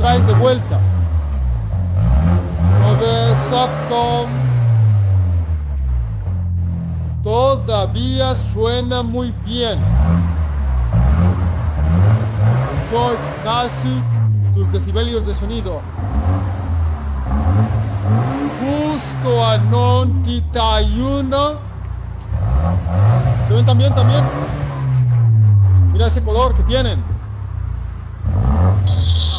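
A car engine revs hard again and again, roaring through a loud exhaust and dropping back to idle.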